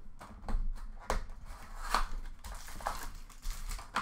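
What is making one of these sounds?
A foil wrapper tears open.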